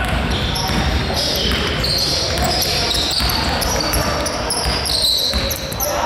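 A basketball bounces on the court with thuds.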